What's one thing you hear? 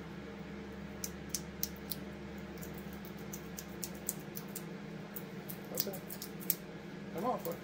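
Small metal parts click and tap in a man's hands.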